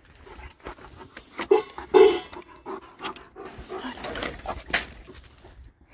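A dog whines and yelps close by.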